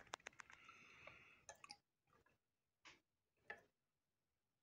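A glass dropper clicks against a glass dish.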